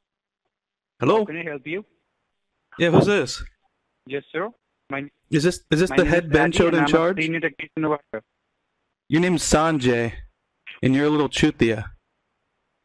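A man speaks into a phone with animation, heard close.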